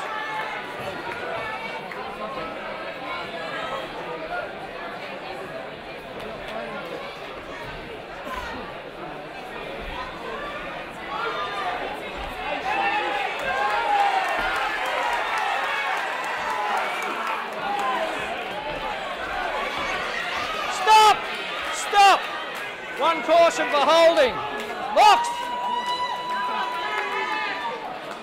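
A crowd cheers and shouts throughout in a large echoing hall.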